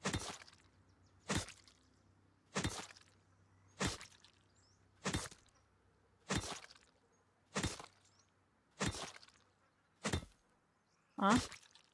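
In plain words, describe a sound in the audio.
A pickaxe strikes repeatedly at a steady pace, each blow a sharp thud.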